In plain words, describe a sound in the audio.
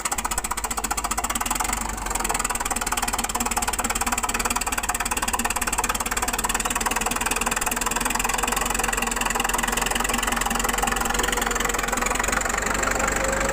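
A bulldozer blade scrapes and pushes through soil.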